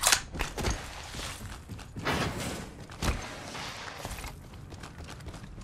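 Quick footsteps clank on a metal floor.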